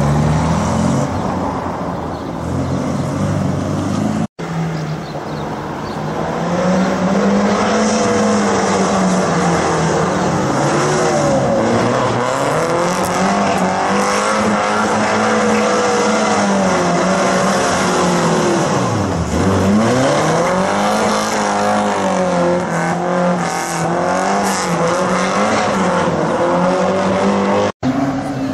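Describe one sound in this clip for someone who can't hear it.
A car engine roars loudly and revs up and down as it races through turns.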